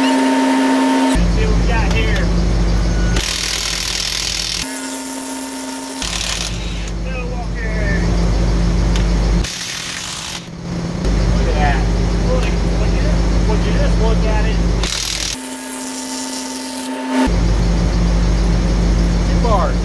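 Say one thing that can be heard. An impact wrench rattles loudly in short bursts.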